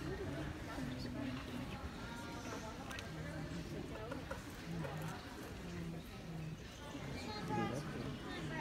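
Children and adults chatter in a large echoing hall.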